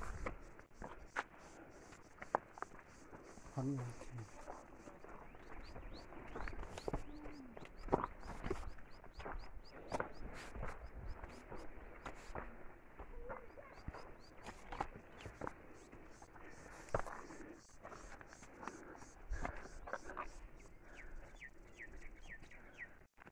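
Footsteps crunch and scuff on a stone path.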